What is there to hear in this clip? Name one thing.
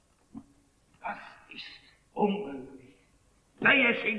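An elderly man speaks in short bursts.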